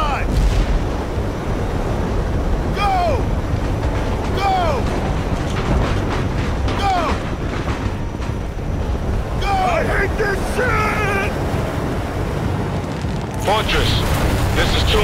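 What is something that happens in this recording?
Aircraft engines roar loudly and steadily.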